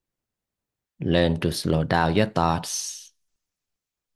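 A man speaks calmly and close to a microphone, as on an online call.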